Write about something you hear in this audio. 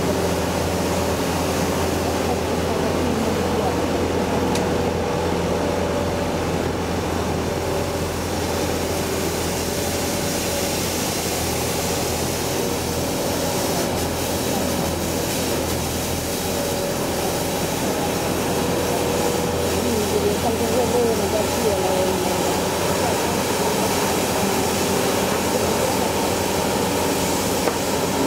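A street sweeper's engine hums steadily close by.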